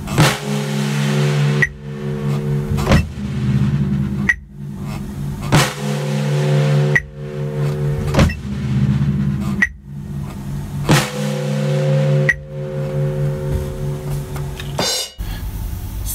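A snare drum is struck with sticks at an even pace, each hit ringing out.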